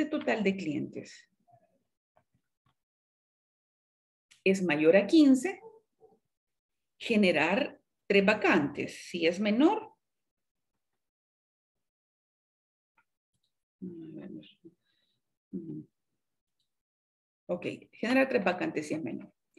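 A woman speaks calmly into a microphone, explaining in pauses.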